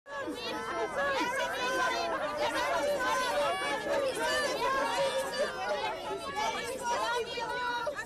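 A crowd of fans cheers and shouts excitedly close by.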